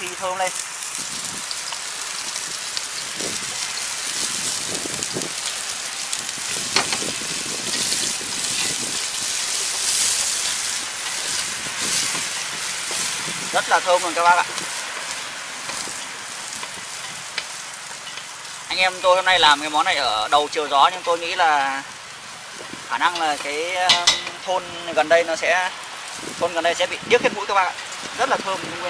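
Oil sizzles and crackles in a hot pot.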